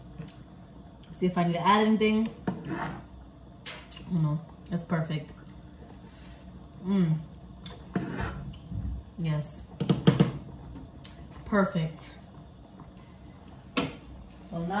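A spoon clinks against a pot.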